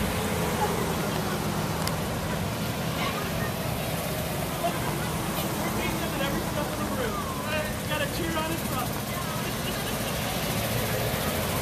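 A pickup truck engine idles and rolls past nearby.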